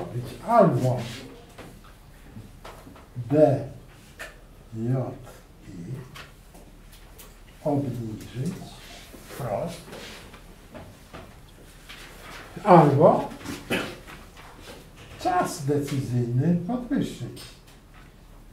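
A middle-aged man speaks calmly in short phrases, close by.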